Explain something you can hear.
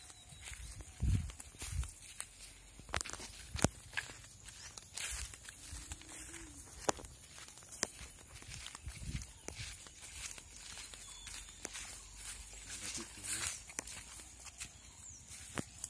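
Footsteps thud softly through grass.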